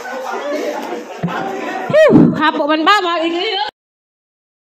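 Young women chatter in a room.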